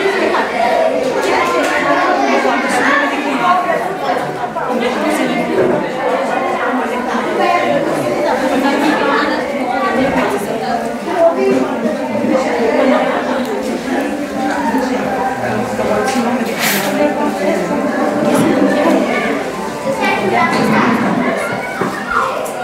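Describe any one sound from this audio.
Several women talk and chatter nearby.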